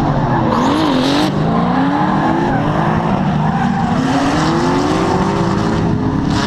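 Tyres squeal as cars slide.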